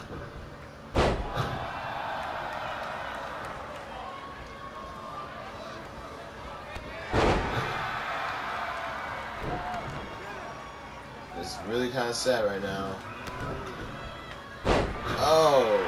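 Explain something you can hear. Bodies slam hard onto a wrestling ring mat with heavy thuds.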